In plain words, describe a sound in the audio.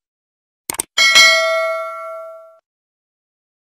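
A bell chimes brightly and rings out.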